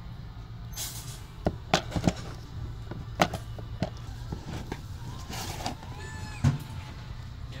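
Plastic game cases click and knock as a hand sorts through them.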